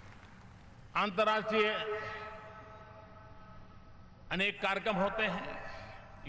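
An elderly man speaks firmly into a microphone, his voice echoing over loudspeakers outdoors.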